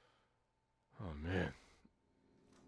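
A young man exclaims loudly, close to a microphone.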